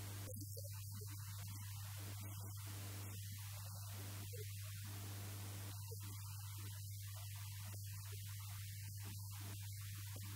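A middle-aged man addresses an audience through a microphone and loudspeakers.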